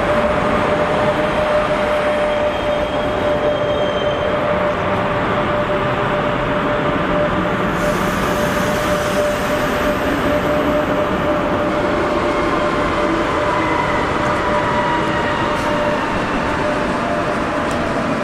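A passenger train rolls past close by with a loud, steady rumble.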